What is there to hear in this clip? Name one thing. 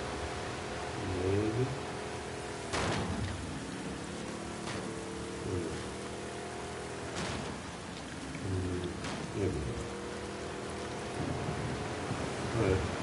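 A man talks now and then, close to a microphone.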